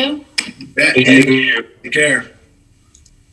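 A young woman speaks briefly over an online call.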